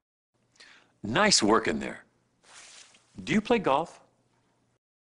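A middle-aged man speaks calmly and clearly to the listener.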